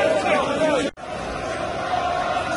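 A distant crowd murmurs outdoors.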